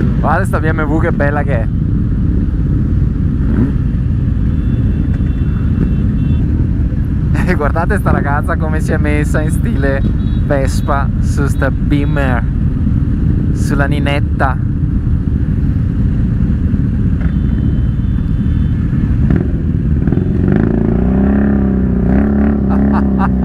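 Motorcycle engines idle with a deep, steady rumble.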